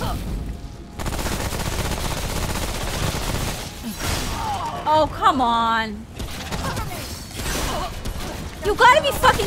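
Gunfire rattles loudly.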